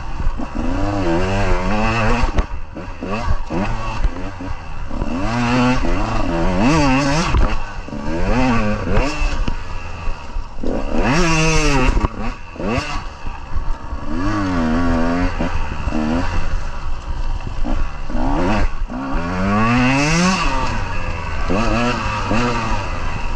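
Dry leaves crunch under tyres.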